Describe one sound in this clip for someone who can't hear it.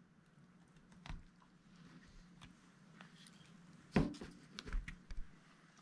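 Hands knock a fish against a wooden board.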